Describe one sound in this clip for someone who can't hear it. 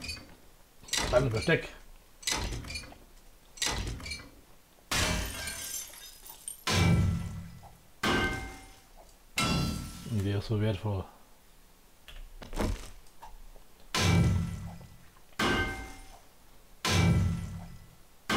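Metal clangs repeatedly as a wrench strikes a metal box.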